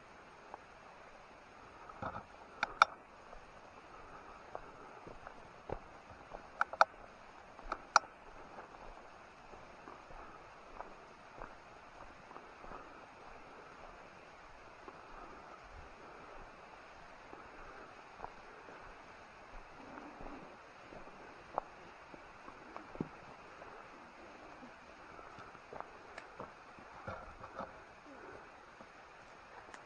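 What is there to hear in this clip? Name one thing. Footsteps crunch through undergrowth and snap twigs close by.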